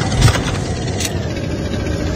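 A short click sounds as an item is picked up.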